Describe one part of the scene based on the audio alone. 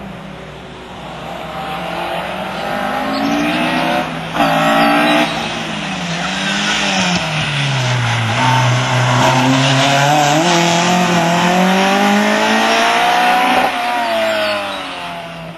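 A racing saloon car engine revs hard through slalom corners, rising and falling with gear changes.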